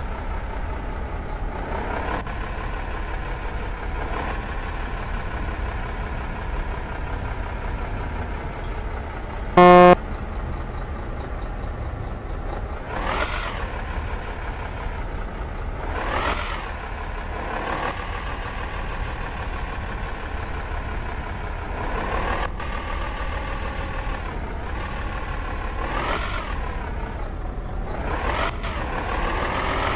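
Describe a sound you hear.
A truck engine hums steadily, rising and falling in pitch as it speeds up and slows down.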